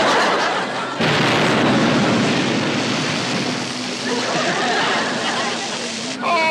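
A loud explosion booms and water roars up in a rushing spray.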